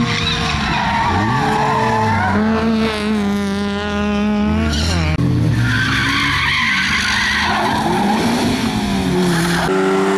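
Tyres screech and skid on tarmac.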